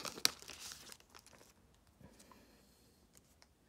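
Trading cards rustle and slide as hands shuffle them.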